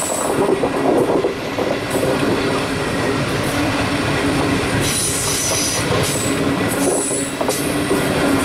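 A passenger train rolls past close by, its wheels rumbling and clattering on the rails.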